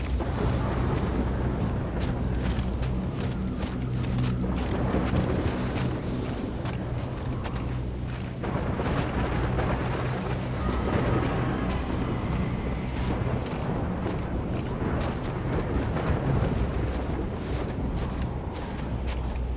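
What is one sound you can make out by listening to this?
Boots slide and crunch through deep snow.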